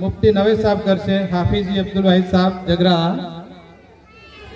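A man speaks loudly into a microphone, reading out over a loudspeaker.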